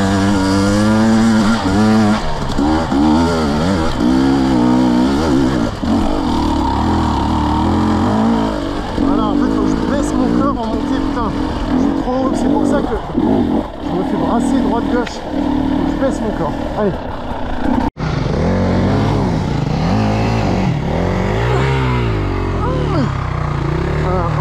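A dirt bike engine revs hard up and down, close by.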